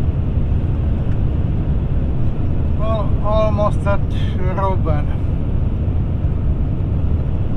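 A car's tyres rumble steadily on an open road.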